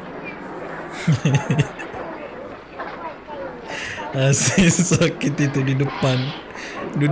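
A man laughs heartily close to a microphone.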